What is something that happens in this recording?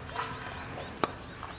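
A cricket bat sharply strikes a ball.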